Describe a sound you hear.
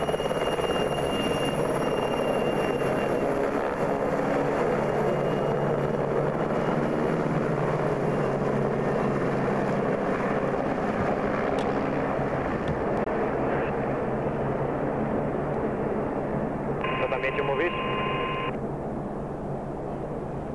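A helicopter lifts off and flies away, its roar slowly fading.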